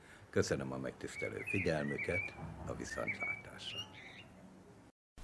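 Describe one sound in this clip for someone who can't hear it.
An older man speaks calmly, close to the microphone.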